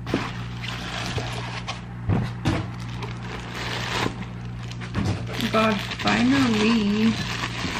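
Plastic wrap crinkles and rustles close by.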